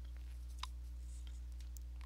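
A paintbrush dabs and scrapes softly against canvas.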